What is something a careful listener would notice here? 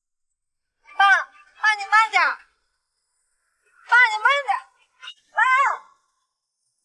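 A young woman calls out anxiously, close by.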